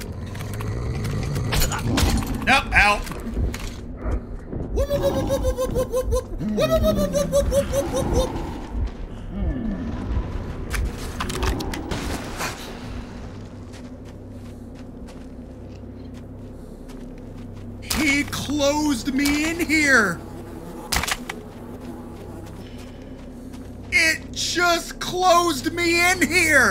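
A man talks and exclaims with animation close to a microphone.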